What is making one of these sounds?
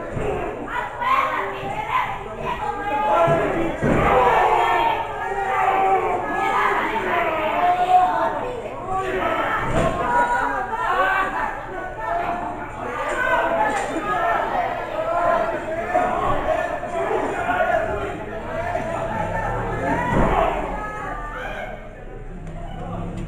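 A crowd of spectators shouts and chants loudly in a hall.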